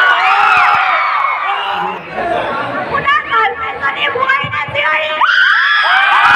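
A crowd of young girls screams and cheers excitedly close by.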